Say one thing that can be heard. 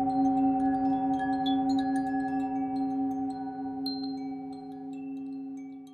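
A metal singing bowl rings with a steady, deep humming tone that slowly fades.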